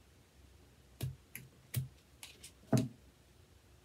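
Scissors snip a few times.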